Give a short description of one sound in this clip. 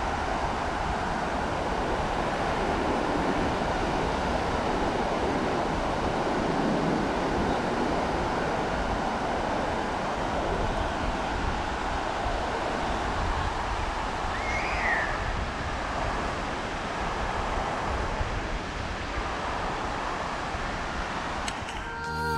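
Waves break on a beach in the distance.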